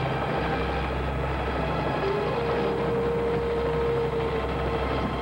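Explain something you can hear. A helicopter engine and rotor drone steadily from inside the cabin.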